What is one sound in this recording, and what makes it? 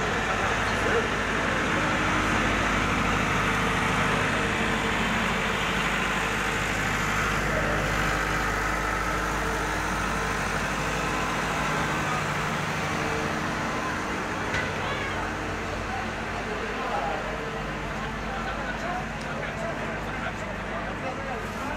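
Street noise and distant traffic hum steadily outdoors.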